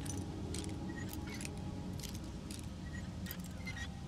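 A metal lock rattles as it is turned and strains.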